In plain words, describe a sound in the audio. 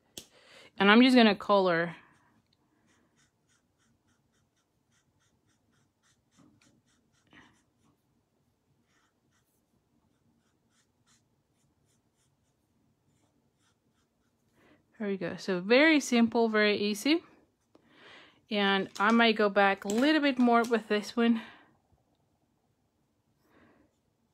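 A marker pen rubs softly on paper.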